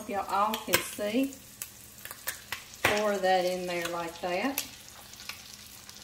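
Beaten egg pours into a pan.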